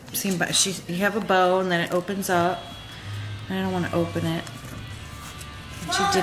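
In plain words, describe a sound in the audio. Paper pages flip and rustle.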